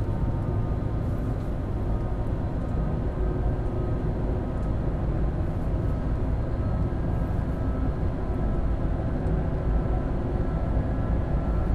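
A train rumbles steadily along the rails with a low hum.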